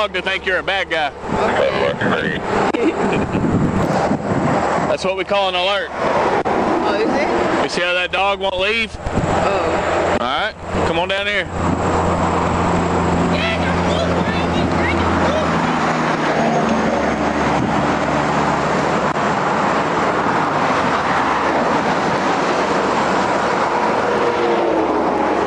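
Traffic rushes past on a highway outdoors.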